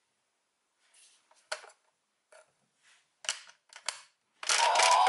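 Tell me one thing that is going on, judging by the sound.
Plastic parts click and snap together.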